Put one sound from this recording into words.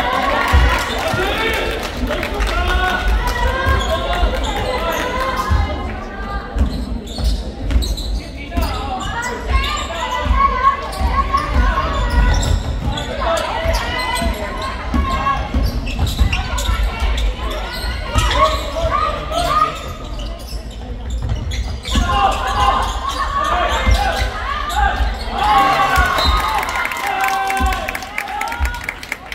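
A basketball thuds as it bounces on a wooden floor.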